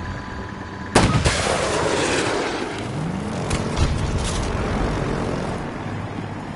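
A jet engine roars past and fades.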